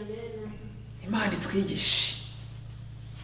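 A woman speaks briefly and cheerfully.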